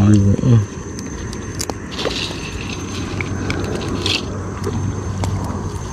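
Boots slosh through shallow water.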